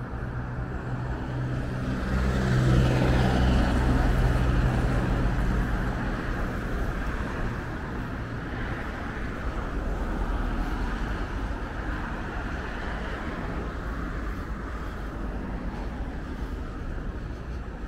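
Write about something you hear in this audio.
Car traffic rumbles past steadily on a nearby street.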